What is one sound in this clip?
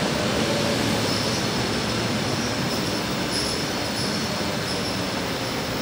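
Train wheels squeal faintly on the rails.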